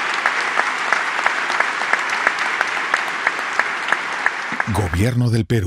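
A large crowd applauds steadily.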